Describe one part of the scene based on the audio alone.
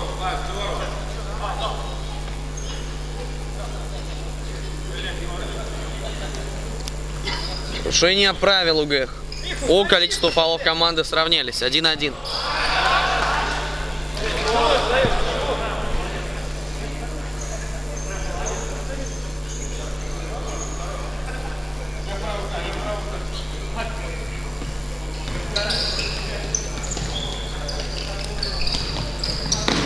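Sports shoes squeak on a hard floor.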